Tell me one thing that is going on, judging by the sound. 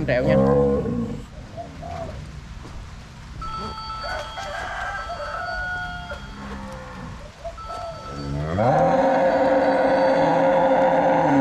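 Cattle hooves shuffle on soft dirt.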